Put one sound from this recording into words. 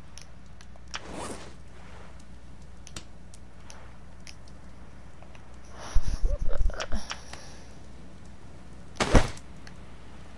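A game menu clicks and whooshes as it opens and closes.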